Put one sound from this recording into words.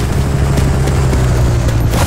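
Gunshots crack in the distance.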